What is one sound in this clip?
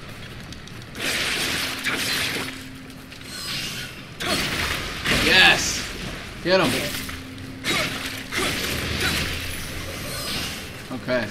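Sword slashes and metallic clashes burst out in a game.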